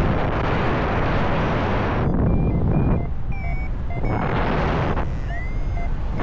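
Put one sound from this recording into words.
Wind rushes loudly past, gusting in bursts high in the open air.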